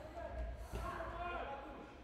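A ball is kicked on a hard indoor floor.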